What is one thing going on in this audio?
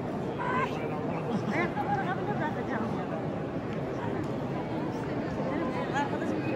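A large crowd of men and women murmurs and chatters in a vast echoing hall.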